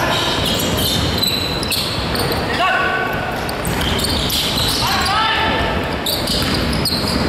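Young men call out to each other across the hall.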